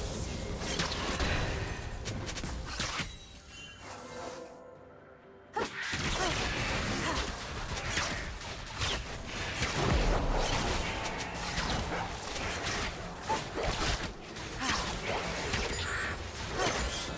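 Magic spells crackle and whoosh during a fight in a video game.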